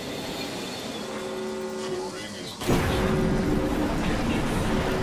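A zipline hums steadily as a character rides along it.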